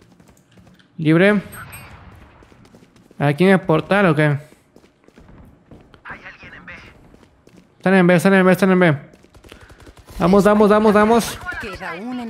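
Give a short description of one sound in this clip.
A young man talks with animation into a close microphone, in loud bursts.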